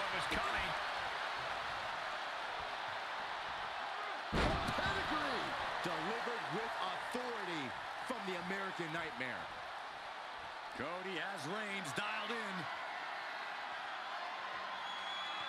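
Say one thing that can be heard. A large crowd cheers steadily in an echoing arena.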